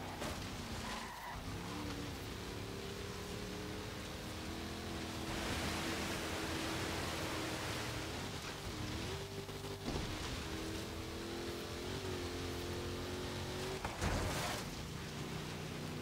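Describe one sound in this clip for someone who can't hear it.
A truck engine roars steadily, its pitch rising and falling with gear changes.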